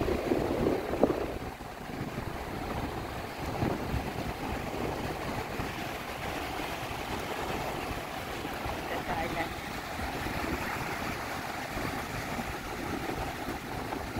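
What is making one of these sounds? Ocean waves break and wash onto a sandy shore.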